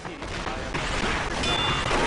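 A game weapon fires in short bursts.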